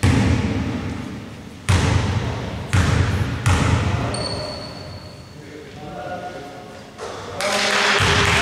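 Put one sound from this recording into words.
A basketball thumps on a wooden court, echoing through a large hall.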